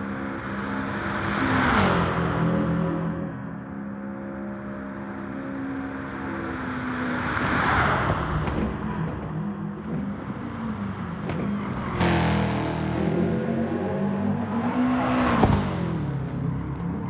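A racing car roars past close by, its sound sweeping by and fading.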